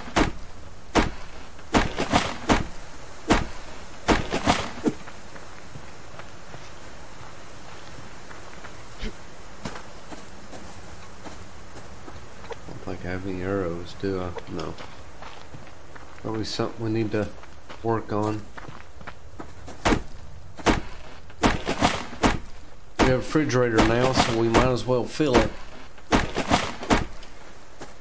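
An axe chops into a tree trunk with sharp, repeated thuds.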